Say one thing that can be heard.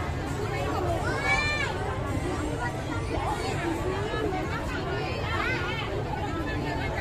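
A singer's voice rises above the music through a loudspeaker.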